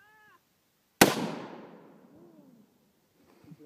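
A rifle fires a single loud shot outdoors, ringing out briefly.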